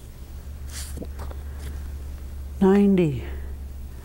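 Stiff paper rustles as a card is turned over.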